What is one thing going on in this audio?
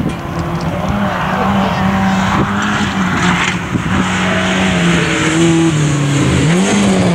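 Gravel sprays from a car's spinning tyres.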